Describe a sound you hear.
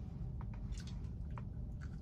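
A man bites and chews a cookie.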